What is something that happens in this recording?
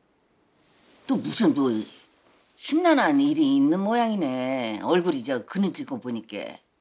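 An elderly woman speaks with animation, close by.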